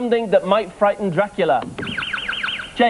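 A man speaks clearly over a microphone.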